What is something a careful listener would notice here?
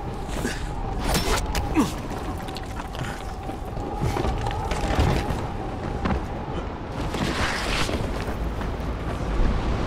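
Hands scrape and grab at rock in short bursts.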